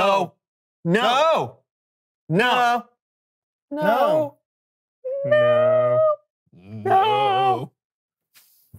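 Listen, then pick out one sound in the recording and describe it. A man speaks with animation close to a microphone, in short bursts.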